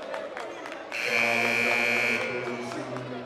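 A loud buzzer blares in a large echoing gym.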